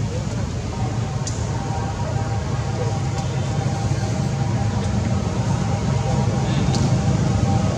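A baby monkey squeaks softly.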